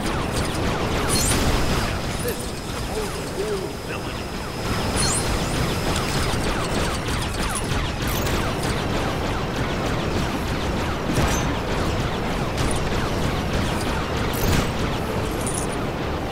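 Explosions boom now and then.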